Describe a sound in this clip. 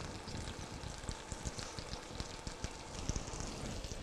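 A spoon scrapes and stirs inside a metal pot.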